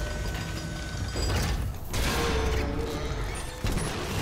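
Heavy armored boots clank on a metal floor.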